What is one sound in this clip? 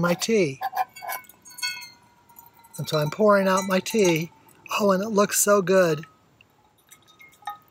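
Liquid pours from a flask into a metal cup.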